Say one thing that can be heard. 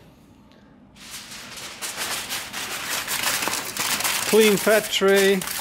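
Aluminium foil crinkles and rustles as it is unrolled and pressed down.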